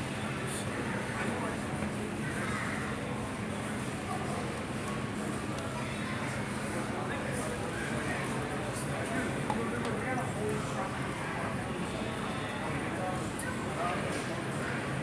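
Rubber boots thud and squeak on a hard floor with each step.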